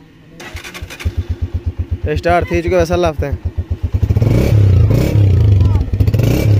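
A motorcycle engine starts and idles with a steady chugging.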